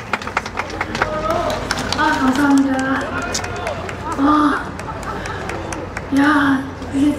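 A young woman sings into a microphone, amplified through loudspeakers.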